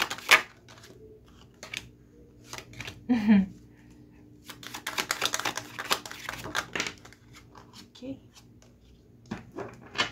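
Playing cards tap softly as they are laid down on a table.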